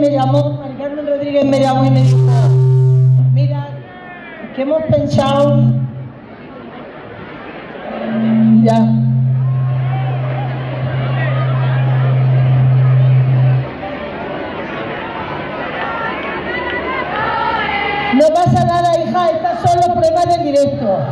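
A woman speaks into a microphone over loudspeakers with animation.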